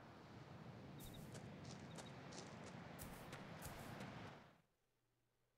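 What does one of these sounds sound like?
Footsteps crunch quickly on gravel.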